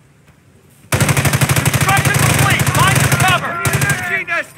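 Tank guns fire with loud, booming blasts.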